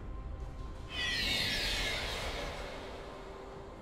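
A bright video game chime rings out.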